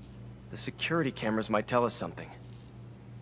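A man speaks calmly and quietly.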